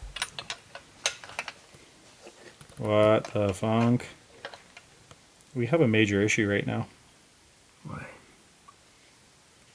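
Small metal guitar parts click as they are fitted by hand.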